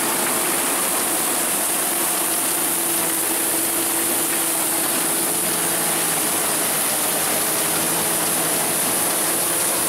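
A combine harvester's engine roars steadily close by.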